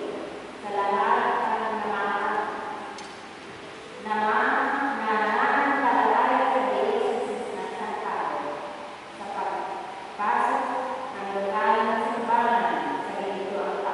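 A woman sings slowly through a microphone in a large echoing hall.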